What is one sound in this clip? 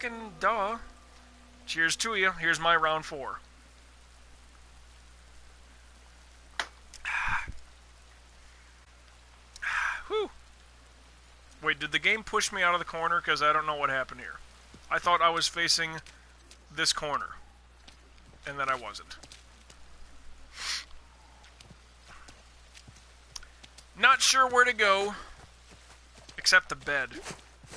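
A man talks with animation close to a microphone, pausing often.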